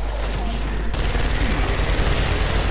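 A rifle fires in a rapid burst.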